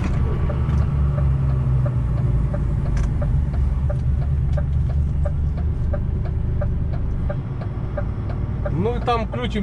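A vehicle's engine hums steadily while driving along a road.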